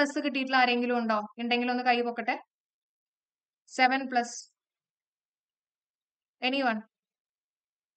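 A young woman speaks calmly and clearly into a close microphone, in short bursts with pauses.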